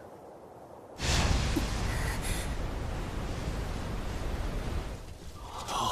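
Flames whoosh and roar.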